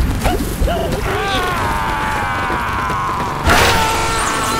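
A cartoon bird squawks as it is flung through the air.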